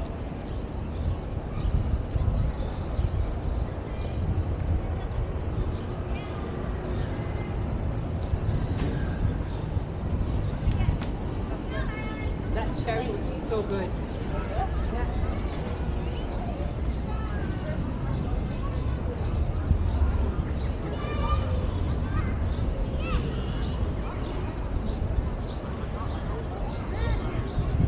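Wind buffets loudly outdoors.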